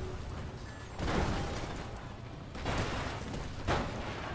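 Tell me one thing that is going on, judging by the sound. A car crashes heavily onto the ground.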